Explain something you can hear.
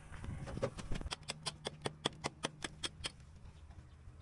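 A man taps tiles into place.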